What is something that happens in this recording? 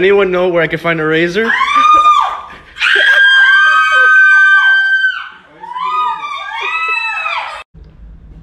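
A woman sings loudly in long, dramatic held notes.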